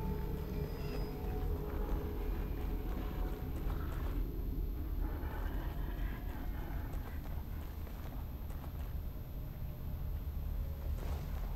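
Footsteps crunch on wet ground outdoors.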